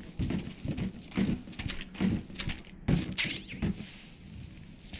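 A metal crate's panels clatter open.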